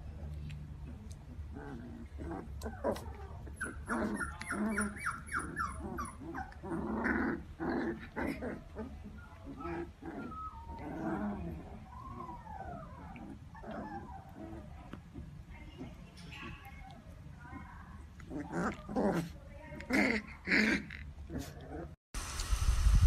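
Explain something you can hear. Puppies yip, growl and whimper as they play-fight close by.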